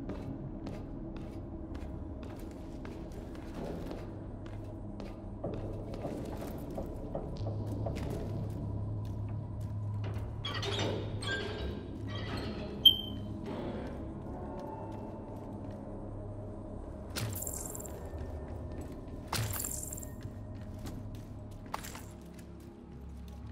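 Footsteps clank on metal floors and stairs.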